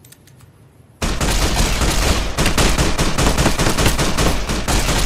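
A gun fires bursts of shots.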